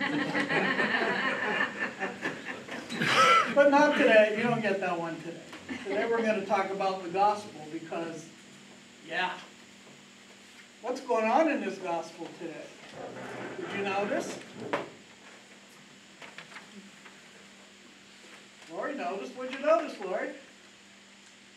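An elderly man talks calmly and with animation, pausing often.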